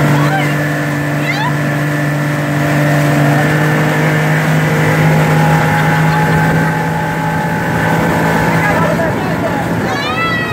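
A motorboat engine drones under way.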